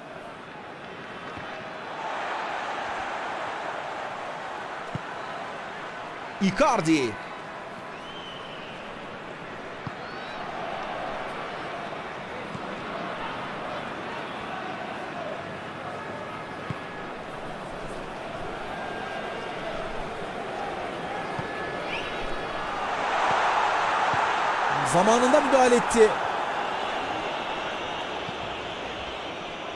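A stadium crowd roars steadily, swelling loudly as an attack nears the goal.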